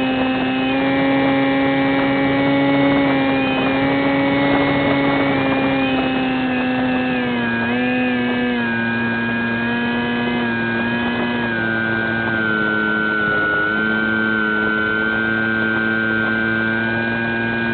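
An electric motor whines steadily at high speed, shifting pitch as the throttle changes.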